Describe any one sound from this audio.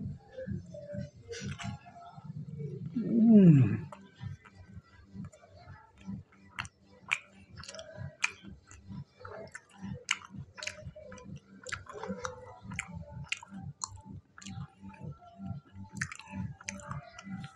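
A man chews food with smacking sounds.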